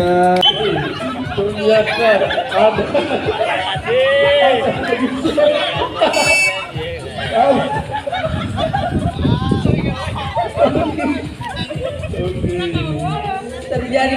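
Several young women chat and laugh close by outdoors.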